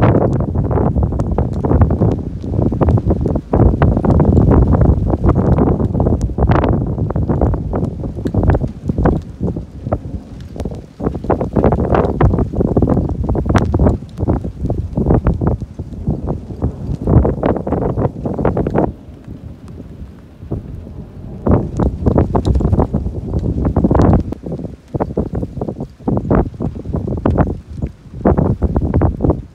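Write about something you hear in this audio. Gusty wind roars and buffets outdoors.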